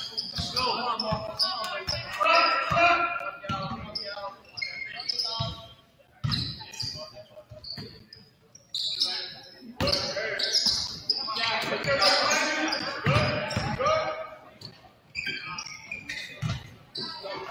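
Sneakers squeak sharply on the court floor.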